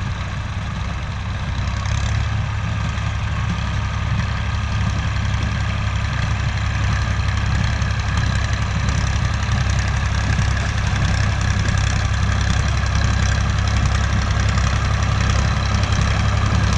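A tractor engine rumbles steadily and grows slightly louder as it draws nearer.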